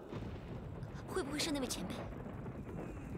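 A young woman speaks with concern.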